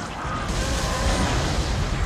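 An energy blast bursts with a loud whoosh.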